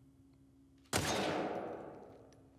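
A single gunshot rings out and echoes away.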